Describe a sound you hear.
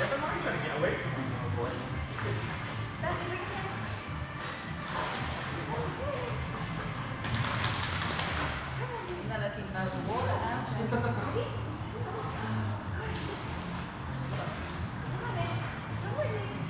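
Water splashes and sloshes as a dog swims in a pool.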